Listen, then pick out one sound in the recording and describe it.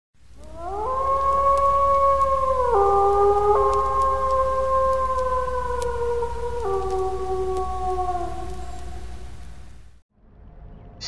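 A wolf howls long and slowly, its pitch sliding down.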